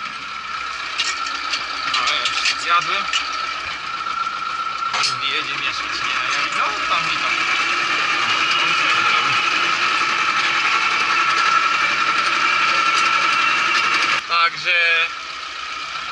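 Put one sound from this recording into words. Cab parts rattle and clatter over rough ground.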